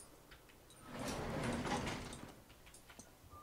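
A heavy elevator door slides open.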